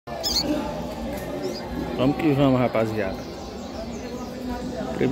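Small birds chirp briefly from close by.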